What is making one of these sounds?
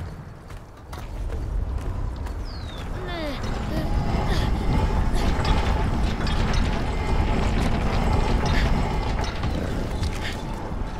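A heavy metal cage rumbles and creaks as it rolls along wooden rails.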